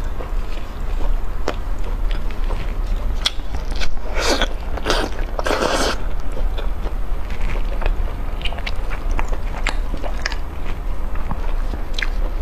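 Hands tear and pull apart roasted meat with moist squelching sounds.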